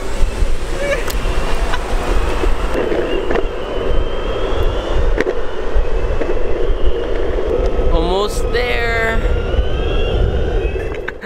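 Small wheels roll steadily over rough asphalt.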